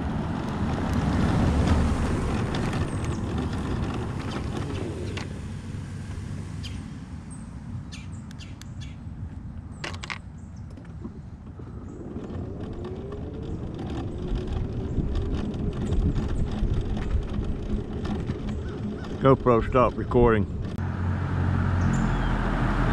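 Small tyres rumble over rough pavement.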